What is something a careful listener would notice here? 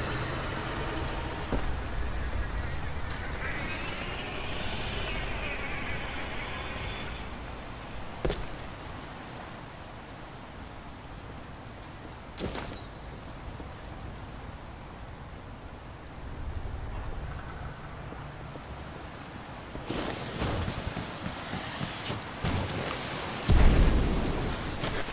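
Footsteps tread over rocky ground.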